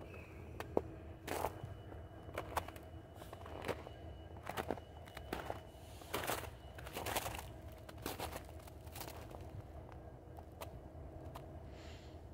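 Footsteps crunch on snow close by.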